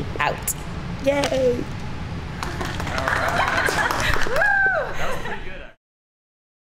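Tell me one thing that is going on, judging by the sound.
A young woman speaks cheerfully and laughs close by in an echoing hall.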